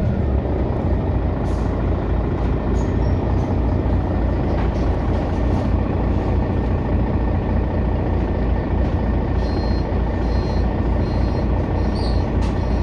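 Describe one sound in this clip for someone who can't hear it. A vehicle's engine idles with a low, steady throb.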